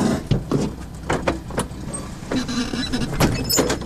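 A door handle clicks and rattles as a hand works it.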